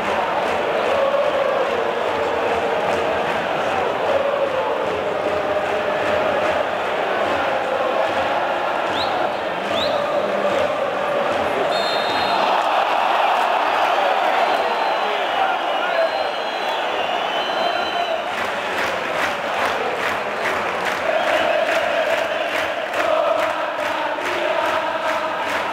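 A large stadium crowd chants and sings loudly in unison.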